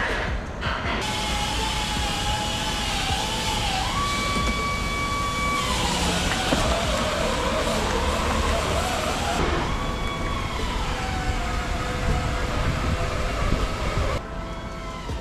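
A car engine runs and revs as the car pulls out slowly.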